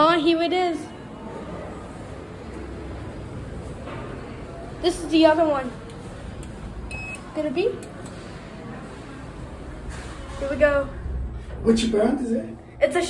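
A young woman speaks casually close by.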